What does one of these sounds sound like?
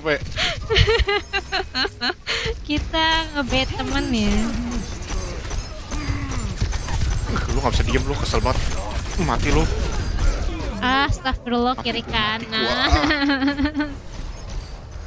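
A young woman talks with animation and laughs into a microphone.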